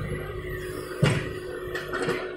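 Soil and stones thud into a steel truck bed.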